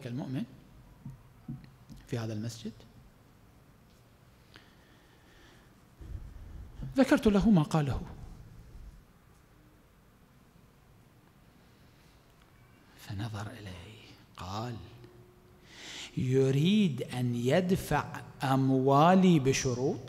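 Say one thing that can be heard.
A man speaks calmly into a microphone, pausing often.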